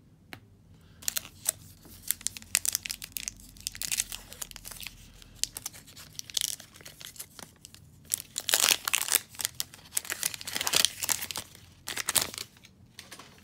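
A foil pack crinkles and tears open.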